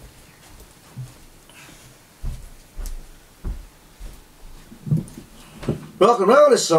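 Footsteps thud on a floor close by.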